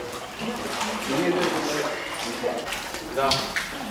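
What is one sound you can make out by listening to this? Water sloshes and splashes around people in a pool.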